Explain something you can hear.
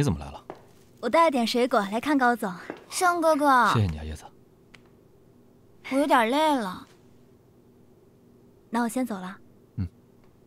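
A young woman speaks cheerfully.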